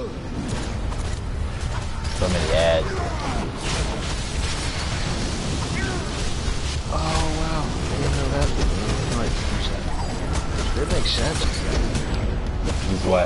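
Energy blasts and hits crackle and boom in a fast fight.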